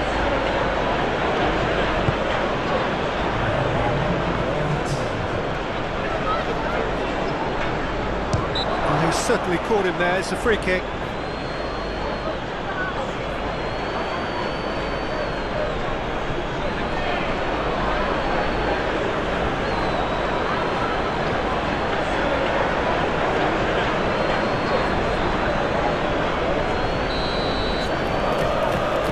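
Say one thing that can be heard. A stadium crowd roars and chants steadily throughout.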